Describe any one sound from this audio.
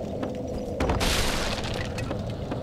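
Wooden planks crash and clatter apart.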